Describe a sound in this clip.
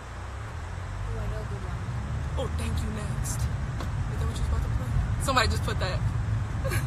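A young woman talks casually and close, heard through a phone microphone.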